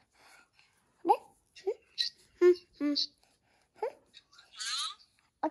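A toddler babbles and speaks in short bursts close by.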